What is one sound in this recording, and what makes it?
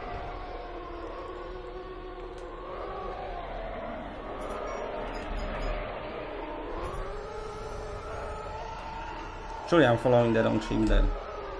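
A spaceship engine hums and whines steadily, its pitch rising and falling.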